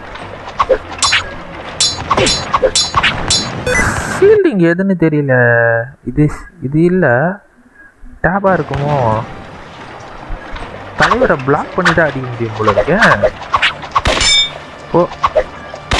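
Swords clash and clang in quick bursts.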